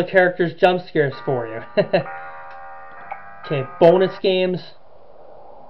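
A short game tune plays with steady electronic tones.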